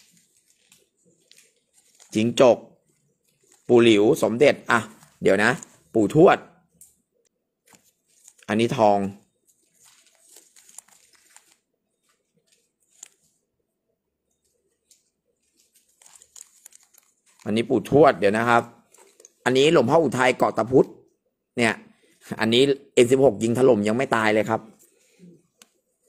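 A plastic bag crinkles softly as it is handled.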